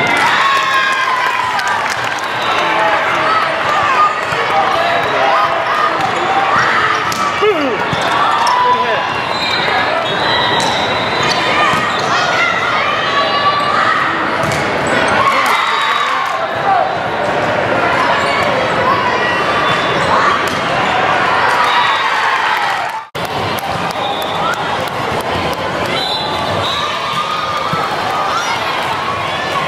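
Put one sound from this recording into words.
A crowd of spectators chatters and cheers in a large echoing hall.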